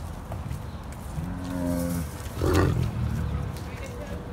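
A tiger chuffs and grunts close by.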